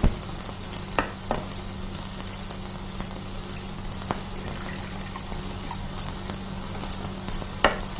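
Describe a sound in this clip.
Tea pours from a teapot into a cup.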